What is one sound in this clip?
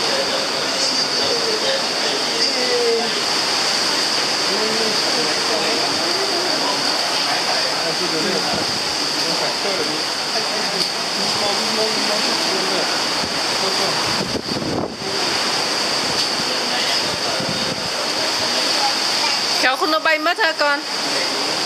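Wind blows across the microphone.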